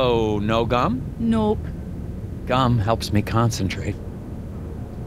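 A man speaks questioningly, close by.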